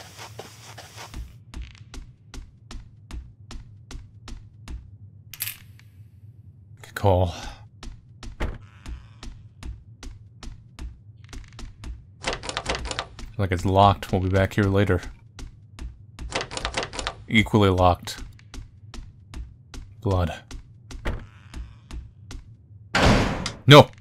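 Footsteps tap quickly and evenly across a wooden floor.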